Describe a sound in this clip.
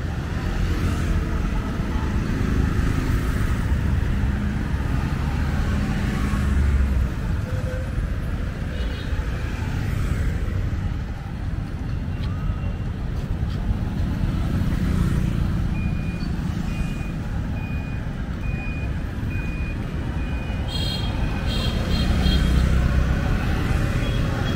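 Motorbikes and cars hum past along a street outdoors.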